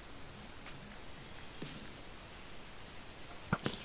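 Footsteps tread on grass.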